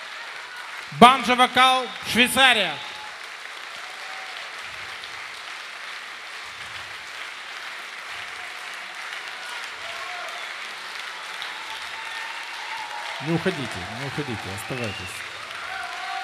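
A banjo plays a few bright plucked notes through loudspeakers.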